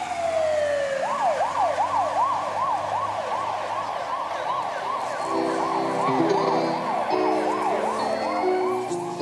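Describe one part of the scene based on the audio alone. A siren wails rapidly up and down.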